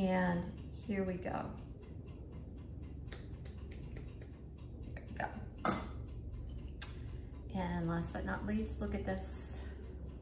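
A middle-aged woman talks calmly into a nearby microphone.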